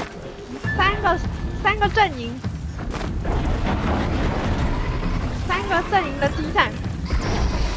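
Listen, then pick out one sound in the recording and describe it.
Mechanical creatures let out warbling, chirping electronic cries.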